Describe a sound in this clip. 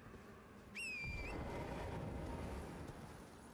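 A deep rumble swells and lingers.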